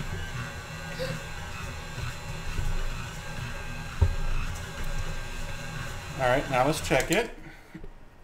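A stand mixer motor hums steadily, then stops.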